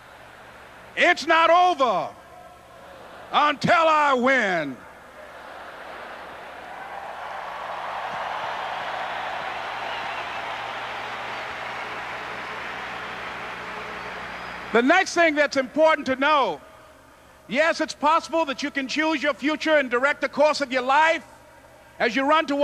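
A man speaks passionately into a microphone, heard through loudspeakers in a large open space.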